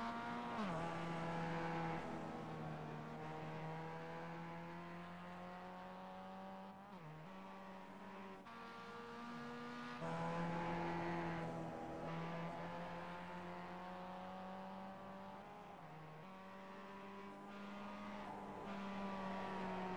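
A four-cylinder sports car engine revs hard while racing, shifting through the gears.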